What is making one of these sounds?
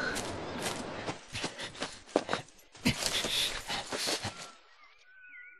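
Leaves and undergrowth rustle as someone moves through brush.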